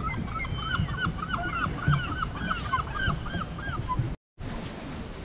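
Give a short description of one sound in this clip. Gulls call repeatedly over water.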